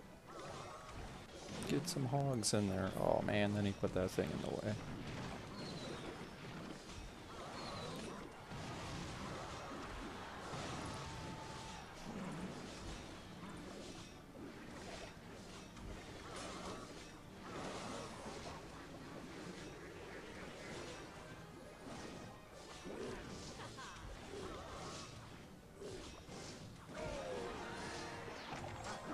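Game battle sounds clash and pop throughout.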